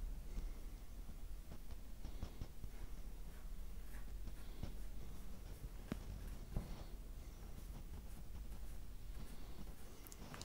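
A brush dabs and strokes softly on canvas.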